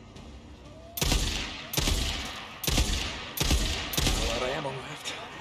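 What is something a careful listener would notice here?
Rifle shots crack in quick succession.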